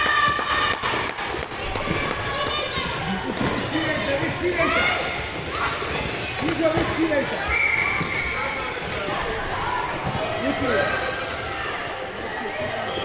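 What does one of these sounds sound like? Plastic sticks knock against a light ball.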